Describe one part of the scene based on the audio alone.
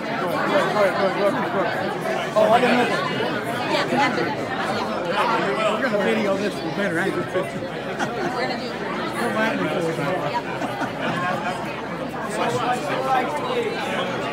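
A crowd of men and women talk and call out close by, all at once.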